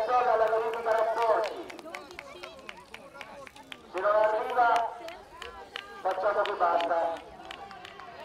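A woman shouts encouragement outdoors.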